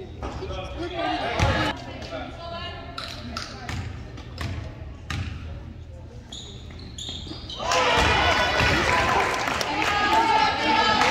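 A basketball bounces with sharp thuds on a hard floor in a large echoing gym.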